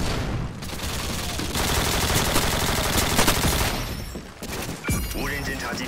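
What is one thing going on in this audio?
Rapid gunfire rattles in short bursts.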